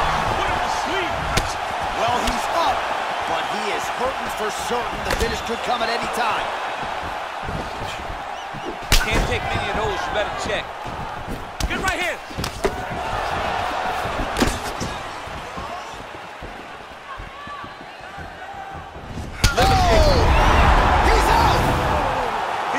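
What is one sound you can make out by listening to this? A crowd murmurs and cheers throughout.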